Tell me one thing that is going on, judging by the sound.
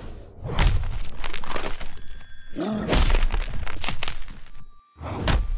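Bones crunch and snap loudly.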